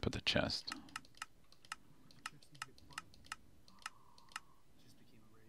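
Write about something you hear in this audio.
A game's menu buttons click sharply, several times.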